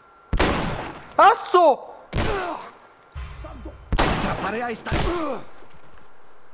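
Heavy blows thud and crack during a close scuffle.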